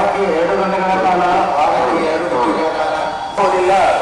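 A crowd of men and women recite a pledge together in unison.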